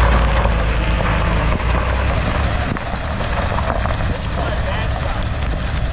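Tyres crunch slowly over gravel.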